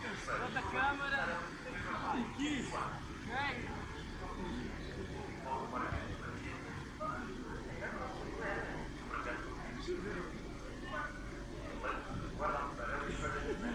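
Children's voices chatter and shout nearby outdoors.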